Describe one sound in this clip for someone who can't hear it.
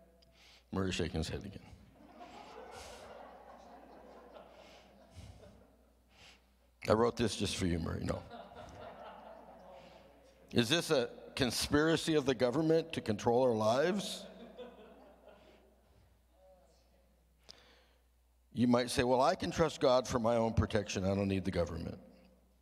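An elderly man speaks slowly and earnestly into a microphone, in bursts with pauses, in a room with some echo.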